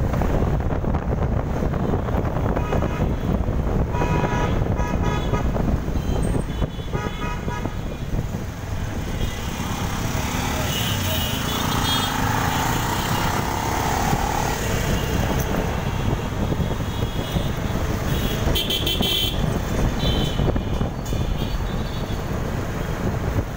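Traffic rumbles along a busy city street, heard from a moving vehicle.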